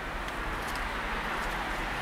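A car drives past on the road.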